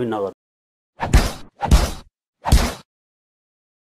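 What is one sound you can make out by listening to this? A fist punches a sign with heavy thuds.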